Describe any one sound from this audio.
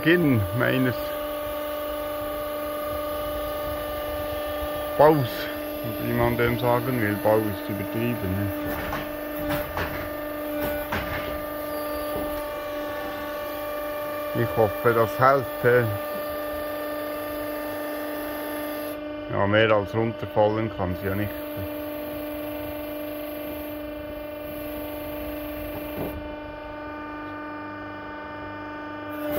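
A machine engine hums steadily close by.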